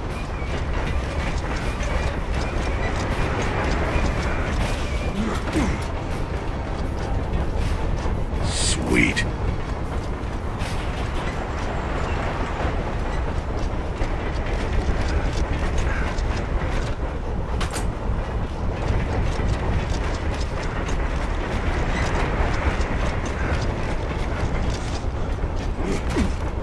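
Heavy armoured footsteps clank on metal as a soldier runs.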